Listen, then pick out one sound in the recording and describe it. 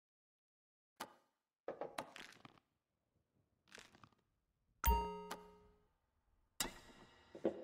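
A glass clinks against a hard counter.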